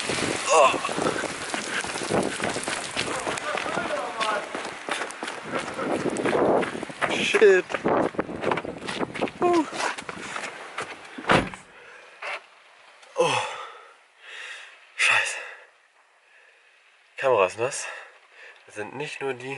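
A young man talks cheerfully, close to the microphone.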